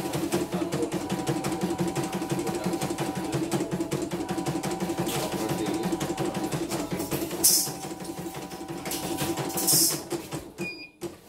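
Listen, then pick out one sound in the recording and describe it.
An embroidery machine stitches with a fast, steady rattling whir.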